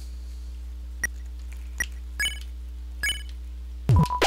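Short electronic menu blips sound several times.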